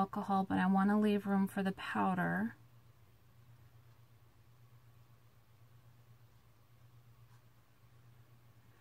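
Liquid trickles from a squeeze bottle into a small bottle.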